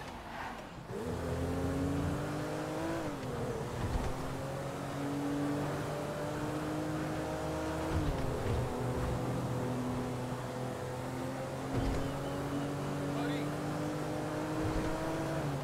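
A car engine hums steadily, rising and falling in pitch as it speeds up and shifts gears.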